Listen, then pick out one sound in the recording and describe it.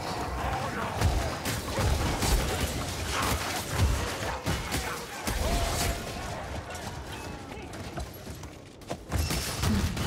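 Swords slash and thud into bodies in a fast melee.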